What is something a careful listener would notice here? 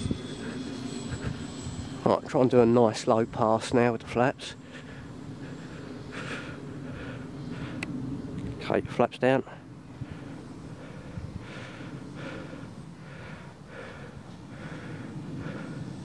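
A small model plane's engine buzzes high overhead.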